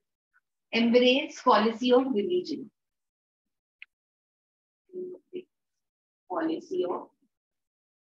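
A woman speaks calmly, as if teaching, through a microphone.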